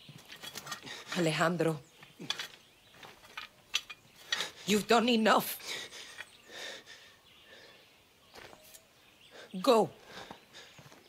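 A young man speaks in a low, strained voice.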